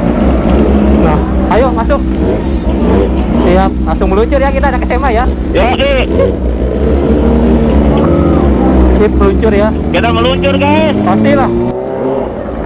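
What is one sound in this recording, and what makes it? A motorcycle engine revs up and down sharply several times.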